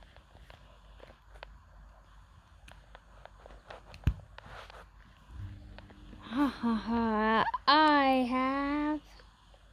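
A small plastic toy figure is handled, with light taps and rustles on fabric.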